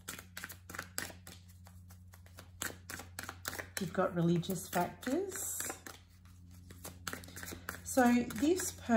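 Playing cards shuffle with quick, flicking riffles.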